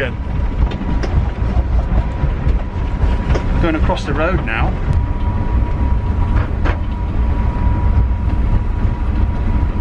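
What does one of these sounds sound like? A train rumbles steadily along its track.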